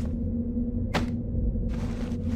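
A metal pipe swishes and strikes with a sharp clank.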